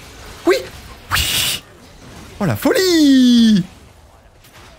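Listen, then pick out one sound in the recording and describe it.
Game spells whoosh and zap in bursts.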